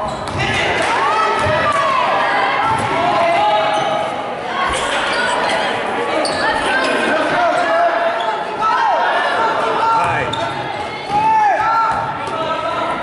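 A crowd of spectators murmurs and calls out.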